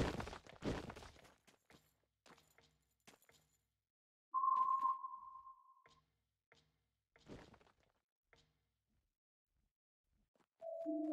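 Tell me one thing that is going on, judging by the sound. Short electronic tones and clicks sound from a game.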